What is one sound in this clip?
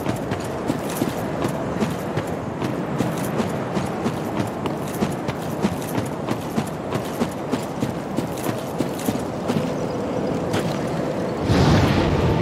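Armoured footsteps crunch steadily on stone.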